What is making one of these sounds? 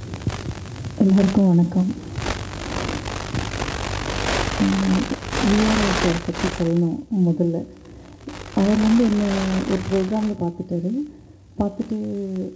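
A woman speaks into a microphone, amplified in a hall.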